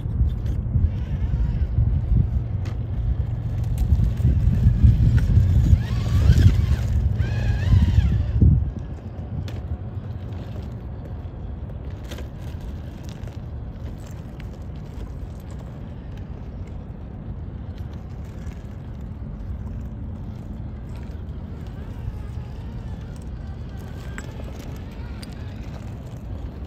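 A small electric motor whirs as a toy truck crawls.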